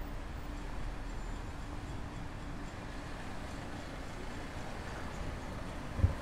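Light traffic hums along a town street in the distance.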